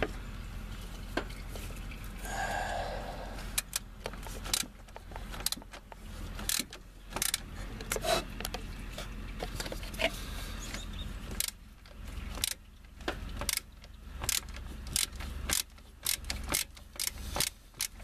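Hands knock and bump against metal car parts.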